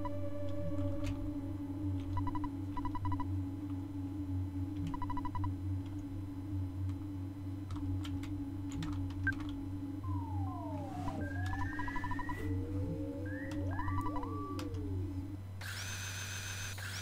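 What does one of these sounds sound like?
Electronic game music plays steadily.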